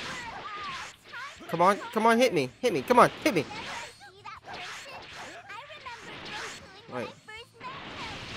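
Energy blasts whoosh and boom in a fight.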